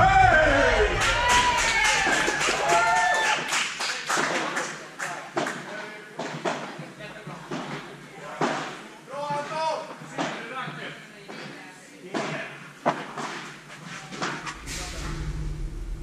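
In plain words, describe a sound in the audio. Padel rackets hit a ball with sharp pops in a large echoing hall.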